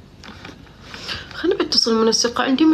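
A woman speaks close to the microphone.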